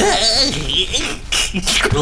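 A small creature giggles with a high, squeaky voice.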